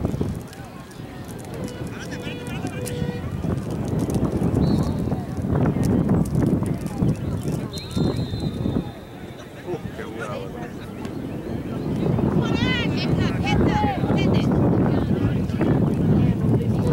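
Spectators on the sidelines shout and cheer outdoors.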